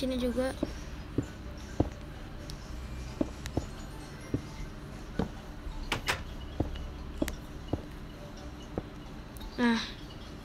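Game blocks are placed with short soft clicks, one after another.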